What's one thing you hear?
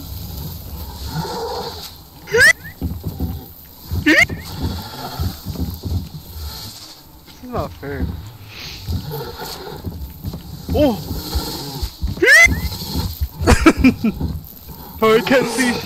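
A young man talks and laughs with animation into a microphone.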